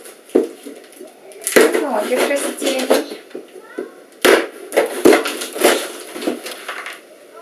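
A knife slits tape on a cardboard box.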